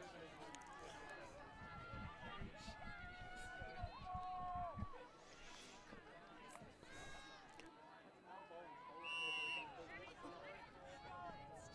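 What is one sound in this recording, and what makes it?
Young men shout and call out to each other across an open field, heard from a distance.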